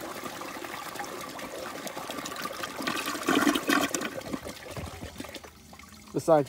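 Water swirls and gurgles in a toilet bowl.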